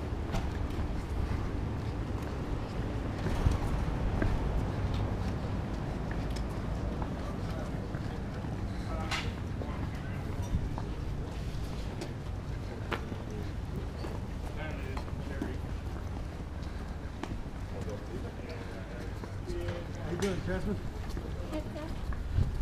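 Boots shuffle and scrape on pavement as men walk together.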